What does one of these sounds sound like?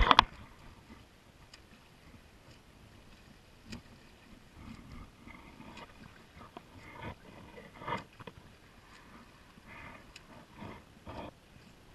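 Water laps and splashes close by.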